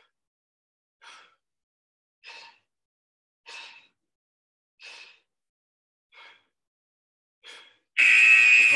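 A man breathes out sharply in a steady rhythm.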